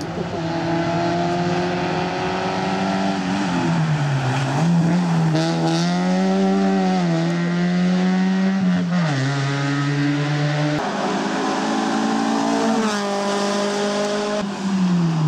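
Small car engines roar and rev hard, rising and falling in pitch with gear changes.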